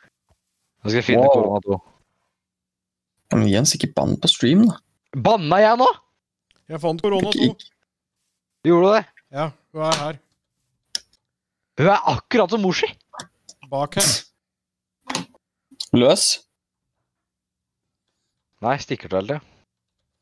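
A middle-aged man talks with animation into a close microphone, in bursts with pauses.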